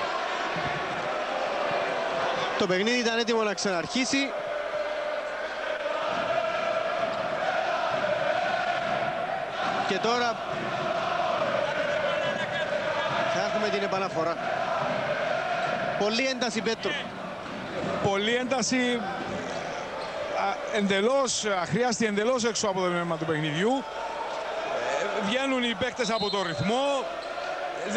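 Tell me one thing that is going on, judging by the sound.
A large crowd chants and cheers loudly in an echoing hall.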